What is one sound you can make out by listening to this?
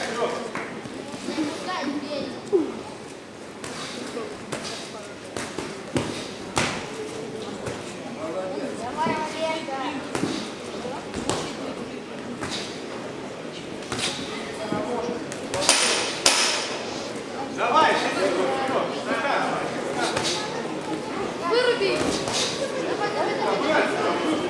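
Punches thud against gloves and bodies in quick bursts.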